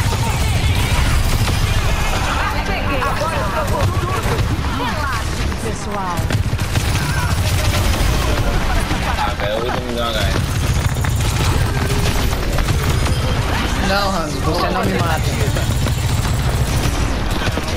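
Rapid energy gunfire blasts in bursts.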